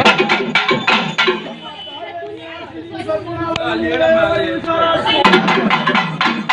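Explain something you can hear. A lively crowd of women and men chatters and calls out close by.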